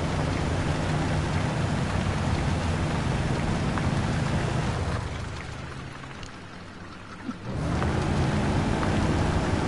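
A truck engine rumbles with a deep, steady drone.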